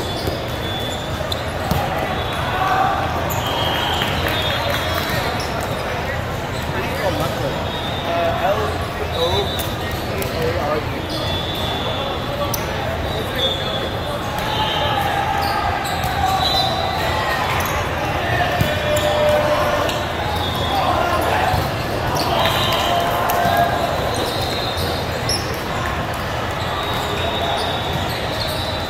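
A large echoing hall is filled with the constant murmur of a crowd.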